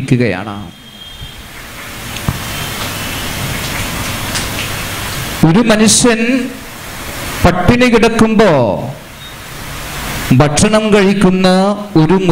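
A man speaks forcefully into a microphone over loudspeakers, in an echoing hall.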